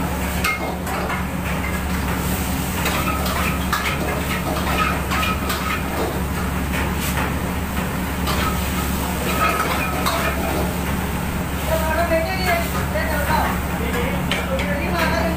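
A gas wok burner roars.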